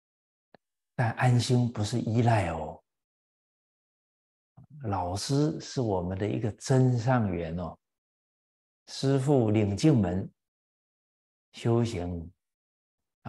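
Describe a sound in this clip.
An elderly man speaks calmly and warmly into a microphone, in short phrases with pauses.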